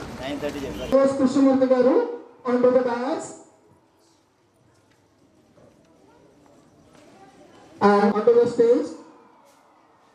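Young children call out and talk nearby.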